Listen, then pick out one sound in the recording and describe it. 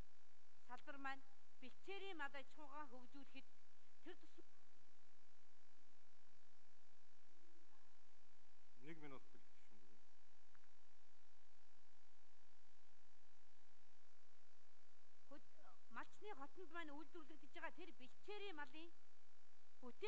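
A middle-aged woman speaks into a microphone in a calm, measured voice.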